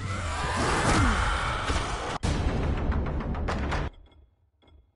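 Loud, harsh combat sounds roar and crash.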